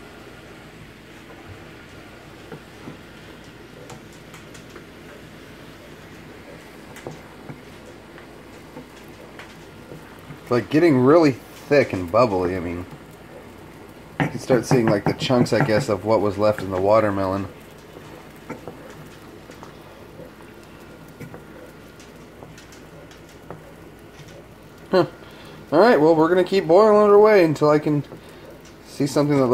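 Thick sauce bubbles and pops in a pan.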